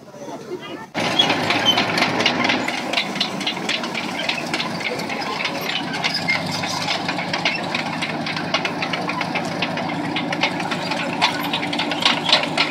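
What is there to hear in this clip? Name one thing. Tank tracks clatter and squeak on concrete.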